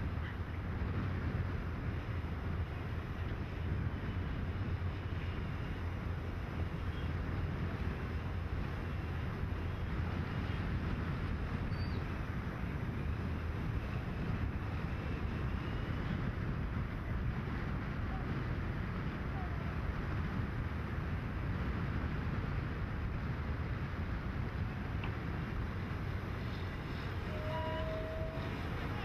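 A heavy loader's diesel engine rumbles steadily nearby.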